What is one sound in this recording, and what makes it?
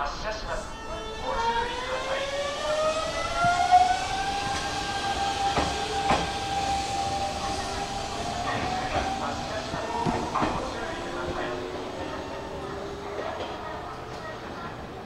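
A train's electric motors whine, rising in pitch as it pulls away.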